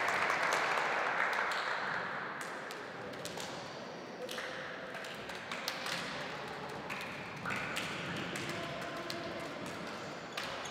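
Players slap hands together in quick handshakes, echoing in a large hall.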